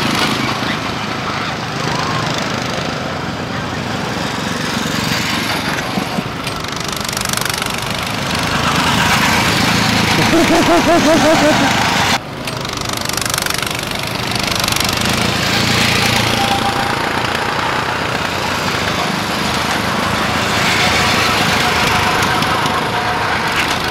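Go-kart engines buzz and whine as karts speed past outdoors.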